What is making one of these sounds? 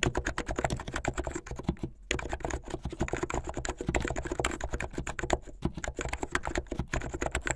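Fingernails tap and click rapidly on keyboard keys, close up.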